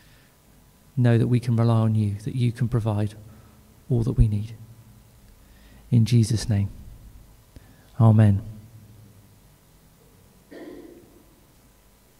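A man sings into a microphone in short phrases.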